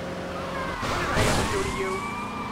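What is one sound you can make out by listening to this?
A vehicle crashes with a loud bang.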